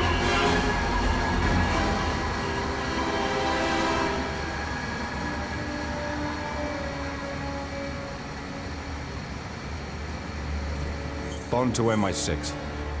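An aircraft engine drones low and steadily.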